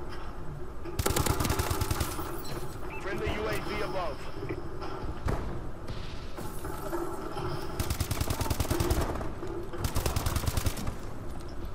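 Rapid gunfire rings out in short bursts.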